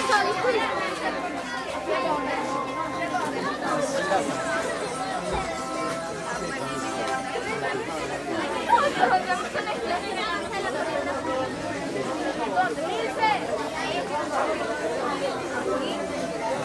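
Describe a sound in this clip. A crowd of young people chatters and calls out nearby.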